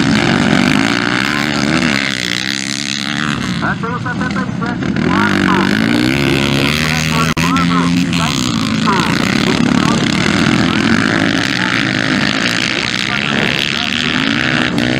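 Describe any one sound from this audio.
Dirt bike engines rev and whine loudly as the motorcycles race past.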